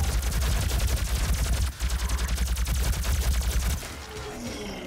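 A plasma rifle fires rapid electric bursts.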